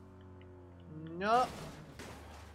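A car crashes with a loud metallic bang.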